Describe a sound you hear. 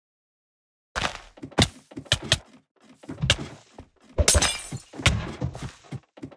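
Sword blows land in quick, sharp hits.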